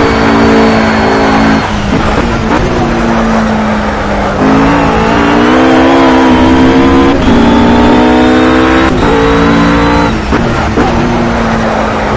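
A GT3 racing car engine in a racing game revs hard and shifts up and down through the gears.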